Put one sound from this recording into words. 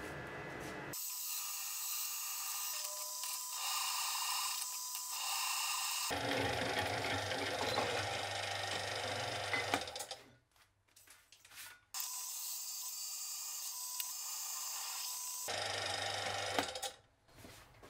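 A drill press whirs steadily as it bores through metal.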